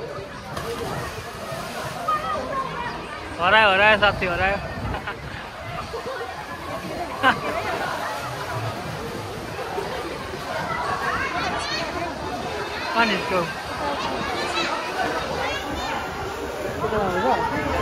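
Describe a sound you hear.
Water splashes as swimmers kick and paddle.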